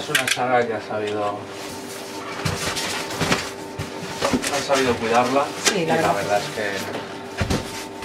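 A foam lid squeaks and scrapes as it is lifted off a box.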